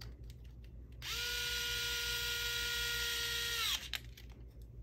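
A small electric screwdriver whirs steadily, then winds down.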